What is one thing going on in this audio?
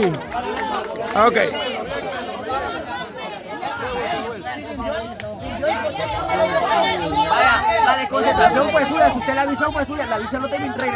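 A large crowd of young men and women shouts and cheers loudly outdoors, close by.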